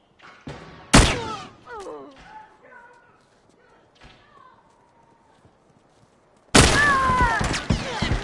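Gunshots crack loudly and sharply.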